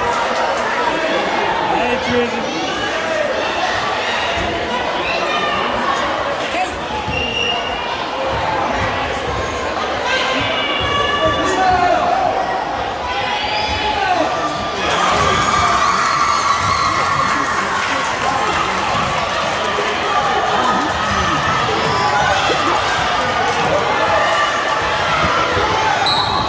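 A crowd chatters loudly in a large echoing gym.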